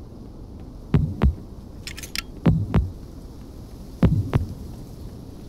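Loud rifle shots boom several times in quick succession.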